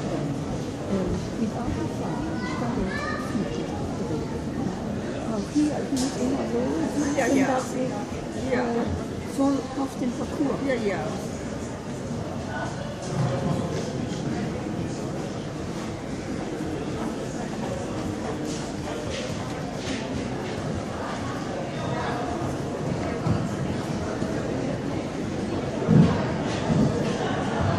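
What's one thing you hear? A horse's hooves thud softly on sand as it canters in a large echoing hall.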